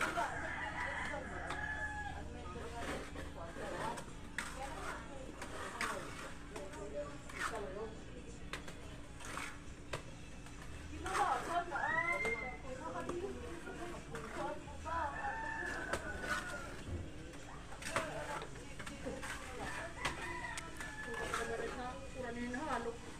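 A trowel scrapes and slaps wet plaster onto a wall.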